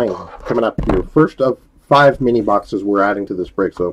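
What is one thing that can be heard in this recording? Hands tear open a foil card pack with a crinkling rustle.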